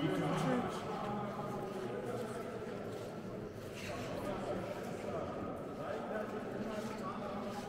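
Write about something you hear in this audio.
A crowd murmurs softly, echoing through a large stone hall.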